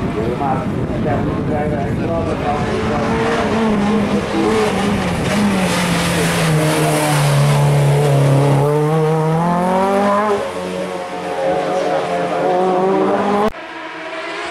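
A rally car engine revs hard and roars past, with its pitch rising and falling as it changes gear.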